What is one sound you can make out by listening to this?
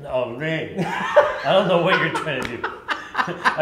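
A younger man laughs.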